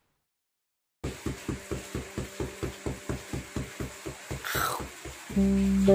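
A dog scratches itself with a quick, rhythmic thumping.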